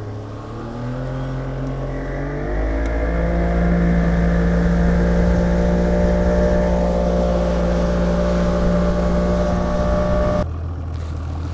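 A boat's outboard engine roars and revs up.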